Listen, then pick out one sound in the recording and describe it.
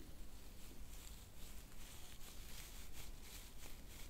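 Fingers gently brush through a woman's hair.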